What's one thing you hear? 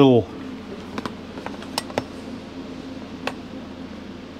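Small items click faintly as a gauge is handled by hand.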